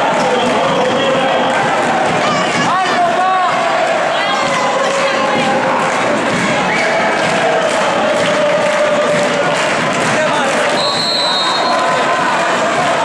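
A crowd of fans chants and shouts loudly in an echoing sports hall.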